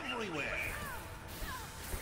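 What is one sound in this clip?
A magic spell crackles and whooshes.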